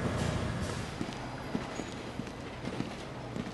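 Footsteps tap on pavement at a steady walk.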